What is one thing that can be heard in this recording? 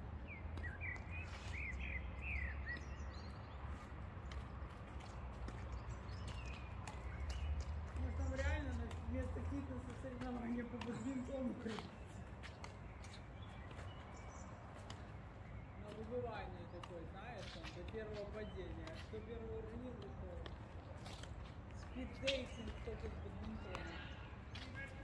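Badminton rackets hit a shuttlecock back and forth with sharp taps.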